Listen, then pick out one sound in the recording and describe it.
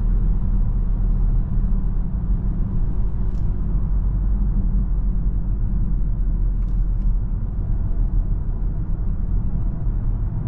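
Tyres roar steadily on a highway inside a moving car.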